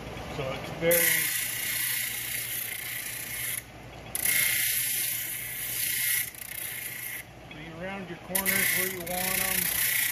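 A grinding wheel sands with a harsh hiss, in bursts.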